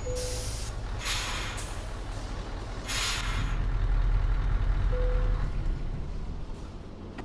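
A truck engine idles with a deep, steady rumble.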